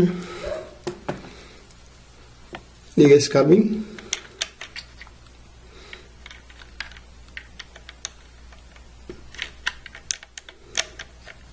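A plastic cable plug clicks and scrapes against a socket.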